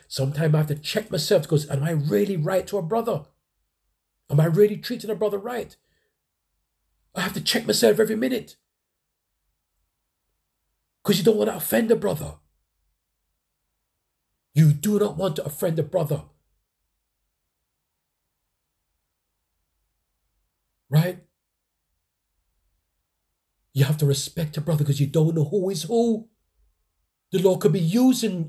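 A man speaks with animation in short bursts, close by, with silent pauses between.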